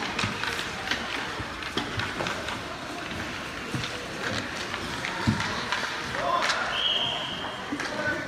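Children shout to each other across an echoing rink.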